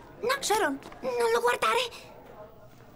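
Another young girl answers in a calm, flat voice.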